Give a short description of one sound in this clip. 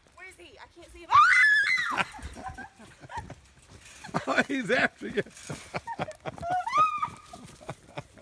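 A girl screams and squeals while running.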